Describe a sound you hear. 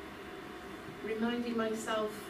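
A woman speaks calmly in a room.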